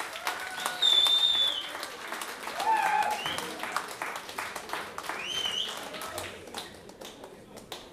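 A small audience applauds, the clapping fading toward the end.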